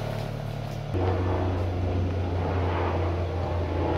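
Sand is tamped down with a tool in a metal box.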